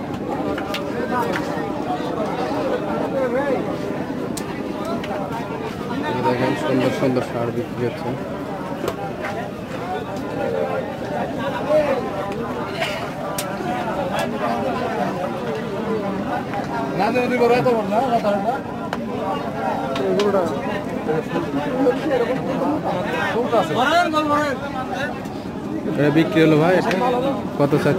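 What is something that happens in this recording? A crowd of men talks all around, close by and outdoors.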